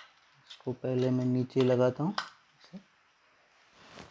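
A battery clicks into a plastic charger.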